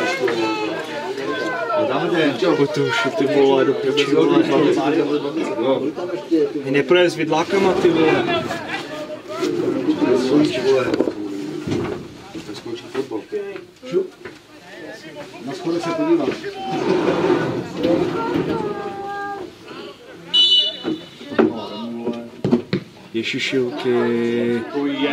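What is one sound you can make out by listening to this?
Men talk and shout to one another outdoors on an open field.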